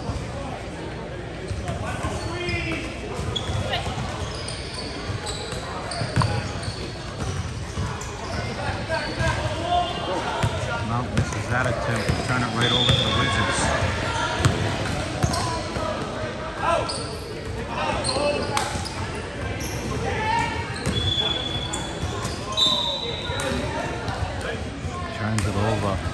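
Women and men talk nearby.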